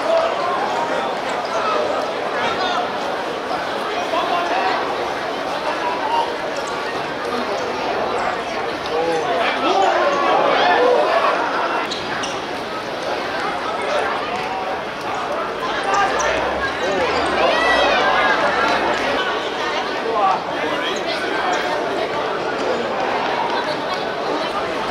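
Players shout to each other.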